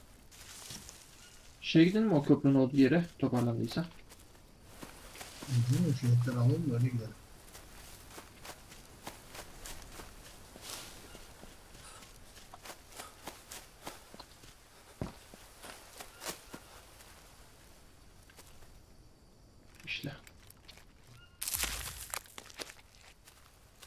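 Footsteps rustle softly through leafy undergrowth.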